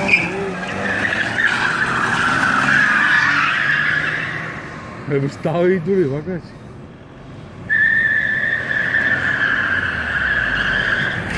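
Car tyres squeal loudly as a car drifts.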